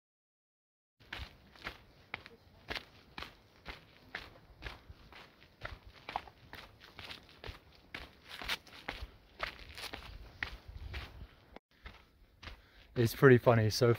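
Footsteps crunch on a gravel trail.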